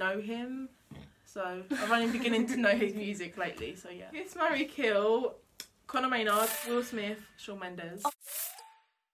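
Young women talk and laugh together close by.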